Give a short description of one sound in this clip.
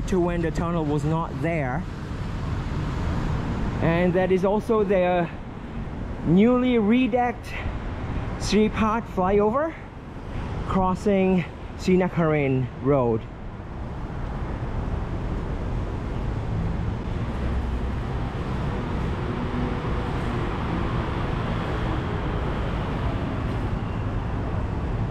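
Traffic hums steadily along a road below, with cars and motorbikes passing.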